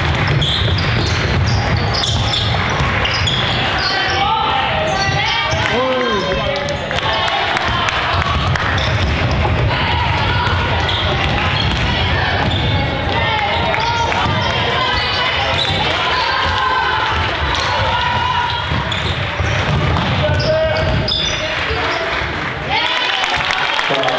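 Young girls shout and call out to each other in a large echoing gym.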